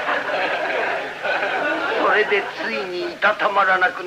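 A large crowd chatters.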